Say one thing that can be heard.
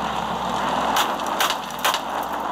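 A car bumps into plastic barriers with dull knocks.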